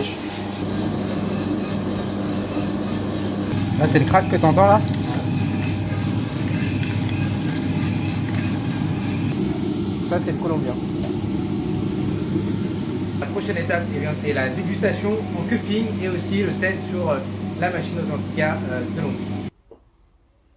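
A coffee roasting machine hums and rumbles steadily.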